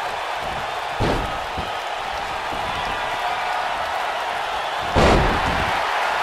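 Heavy thuds of bodies hit the ring mat.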